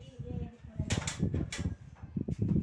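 A metal bed frame clanks.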